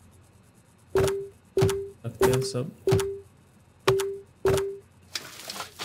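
Menu buttons click sharply several times.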